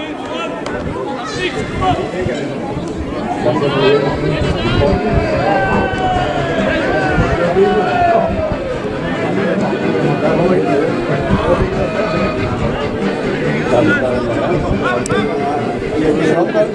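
Players call out to one another across the pitch.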